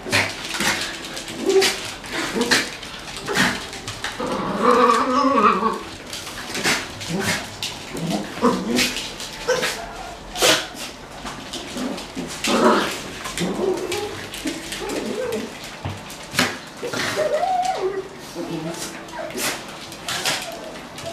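Dogs growl softly as they tussle.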